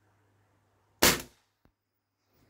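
A rifle fires a single loud shot that echoes outdoors.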